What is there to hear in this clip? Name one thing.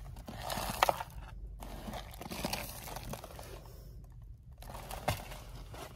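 A cardboard box rustles as it is handled.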